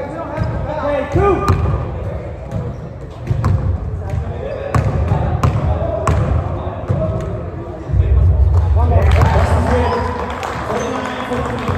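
Men and women chatter in the background of a large echoing hall.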